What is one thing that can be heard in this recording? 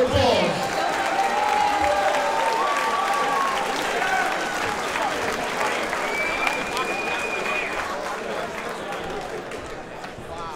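A crowd murmurs and shouts in a large indoor hall.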